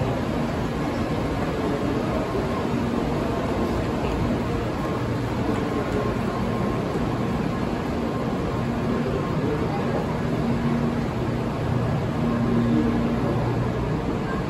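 A train hums steadily as it rolls slowly alongside.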